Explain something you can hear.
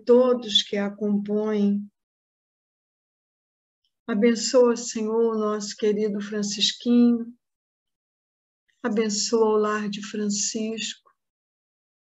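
An elderly woman speaks calmly in short phrases over an online call, with pauses between them.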